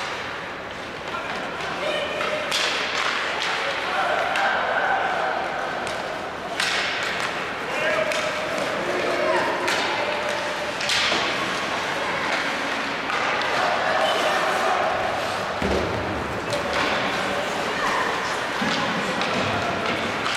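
Young male players shout and call to each other across the rink.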